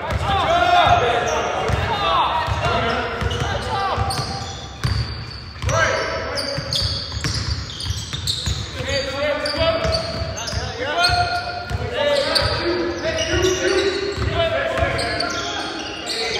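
A basketball bounces with dull thumps as a player dribbles.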